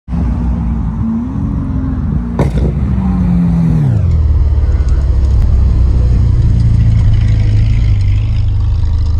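A sports car engine rumbles loudly close by, its deep idle dropping lower and settling.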